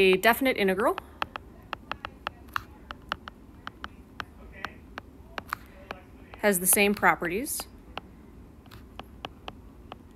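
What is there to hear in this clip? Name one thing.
A stylus taps and clicks on a hard tablet surface in quick, light strokes.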